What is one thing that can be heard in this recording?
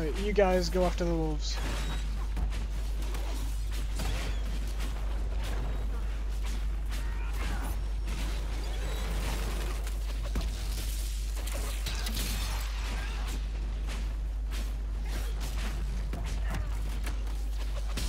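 Swords clash in a game battle.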